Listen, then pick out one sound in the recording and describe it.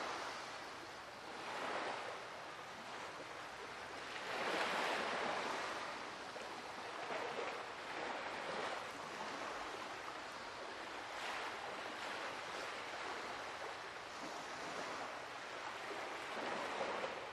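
Sea waves wash and surge gently.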